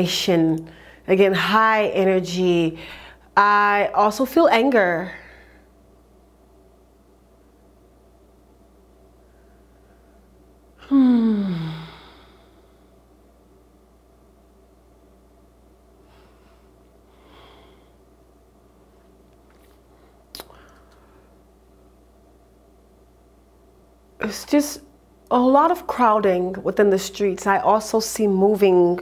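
A young woman speaks calmly and expressively into a close microphone, with long pauses.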